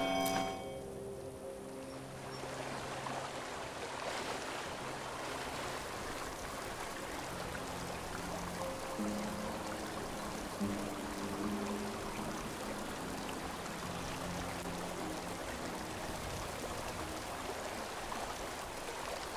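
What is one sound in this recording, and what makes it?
Water laps gently against a stony shore.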